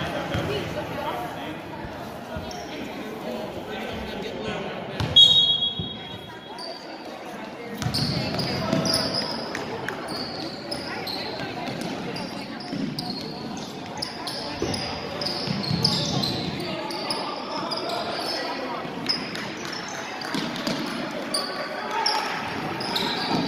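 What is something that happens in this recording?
Spectators murmur and chatter in an echoing gym.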